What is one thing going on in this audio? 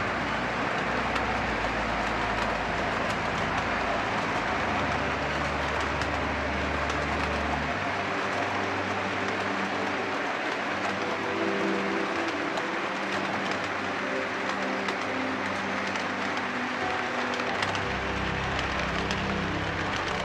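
Model train cars rumble and click steadily along the track.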